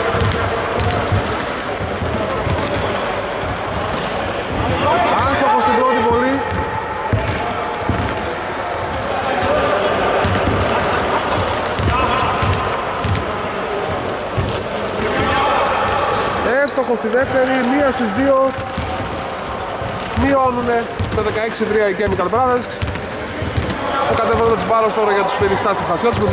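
Men talk and call out across the echoing hall.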